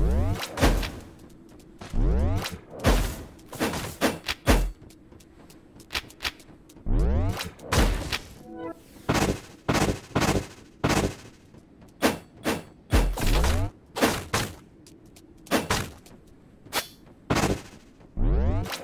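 Swooshing game attack effects burst again and again.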